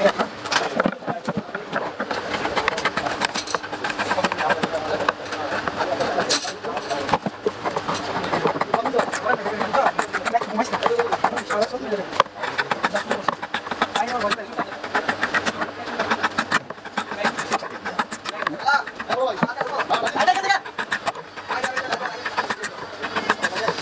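A knife blade scrapes and shaves along a bamboo stick in quick, repeated strokes.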